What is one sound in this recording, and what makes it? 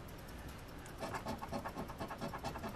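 A coin scrapes rapidly across a card.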